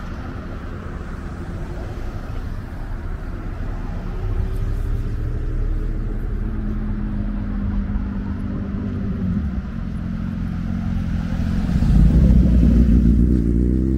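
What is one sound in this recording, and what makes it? Cars pass close by with a rising engine hum.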